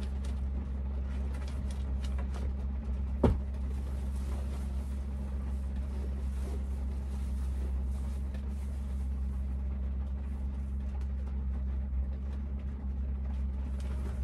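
A blanket rustles as someone shifts under it.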